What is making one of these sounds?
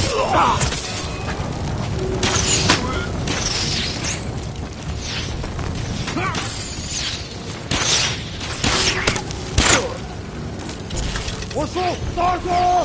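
Swords clash and slash in quick strikes.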